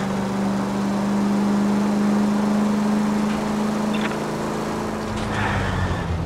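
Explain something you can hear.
A car engine hums steadily as the car drives along a street.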